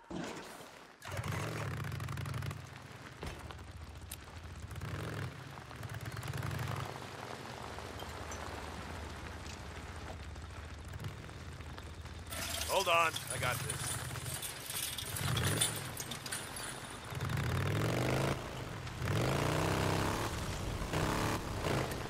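A motorcycle engine drones and revs as the bike rides along.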